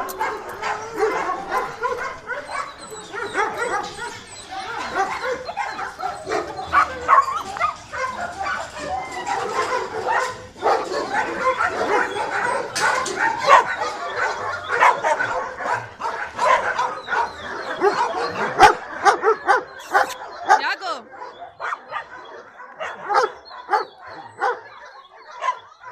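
Dogs whine and yelp excitedly close by.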